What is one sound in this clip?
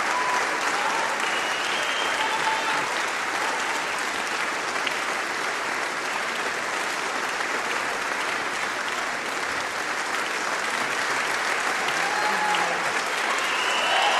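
A large crowd applauds steadily in a big hall.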